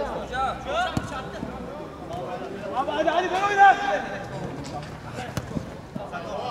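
A football is kicked with sharp thuds.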